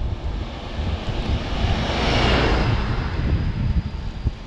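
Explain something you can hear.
A bus roars past close by.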